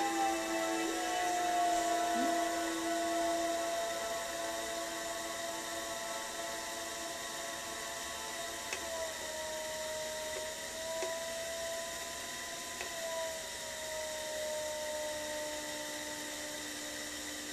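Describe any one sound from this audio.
A potter's wheel motor hums steadily, its pitch drifting slightly.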